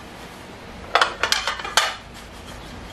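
A metal plate clatters down onto a hard surface.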